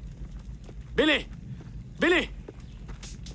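A man calls out sharply.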